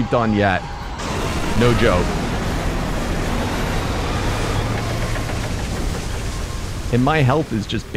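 Electricity crackles and booms with a steady rushing roar.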